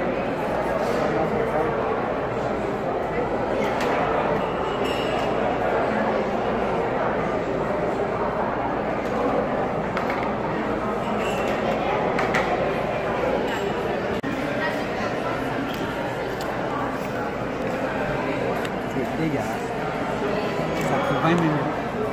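Many voices murmur in a busy room.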